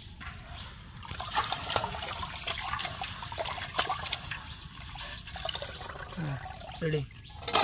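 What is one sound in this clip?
Hands swish and splash rice in water.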